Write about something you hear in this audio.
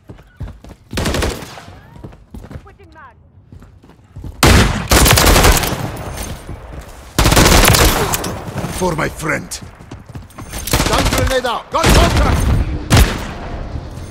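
Rapid gunfire rattles in loud, short bursts.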